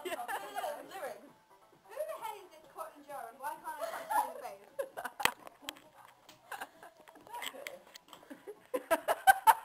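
A young woman talks and laughs nearby.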